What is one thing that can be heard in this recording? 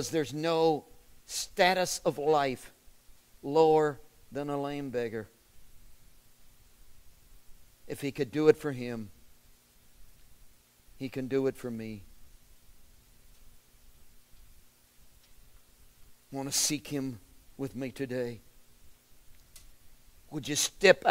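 An older man speaks slowly and expressively, with long pauses, close to a microphone.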